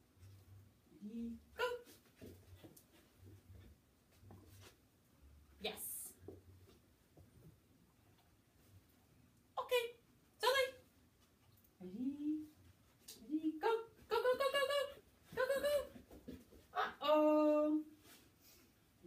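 A woman talks to a dog in a high, encouraging voice, close by.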